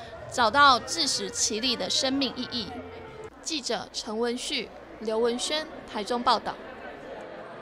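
A crowd of men and women cheers and shouts loudly nearby.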